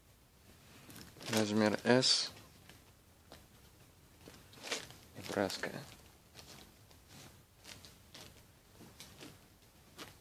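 Plastic bags crinkle and fabric rustles as clothes are handled.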